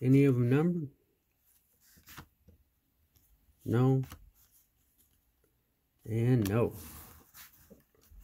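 Cards tap lightly down onto a soft cloth surface.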